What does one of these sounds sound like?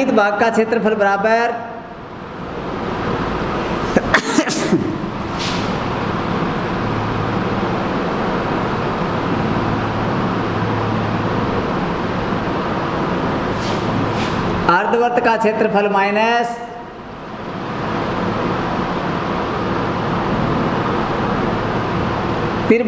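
A marker squeaks as it writes on a whiteboard.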